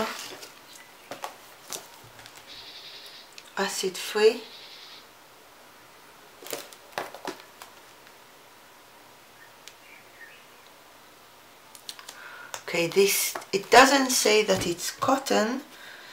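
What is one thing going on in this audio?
Stiff paper pads rustle and tap as they are handled close by.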